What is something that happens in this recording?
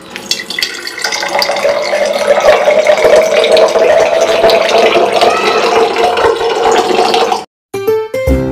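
Water pours into a glass jar, rising in pitch as it fills.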